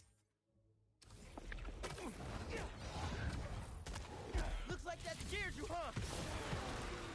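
Heavy blows thud during a fight.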